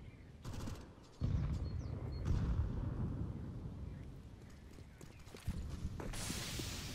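Footsteps thud on stone as a player character walks.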